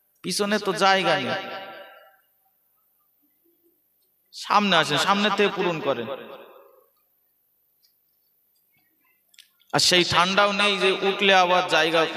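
A man chants in a long, drawn-out melodic voice through a microphone, in phrases with pauses between them.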